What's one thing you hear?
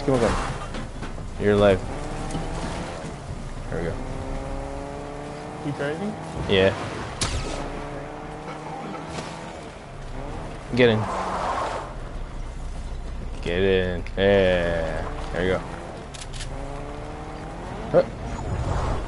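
A car engine revs up and down as it speeds along.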